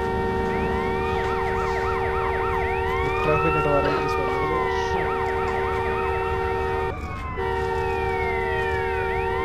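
Police sirens wail and sweep up and down.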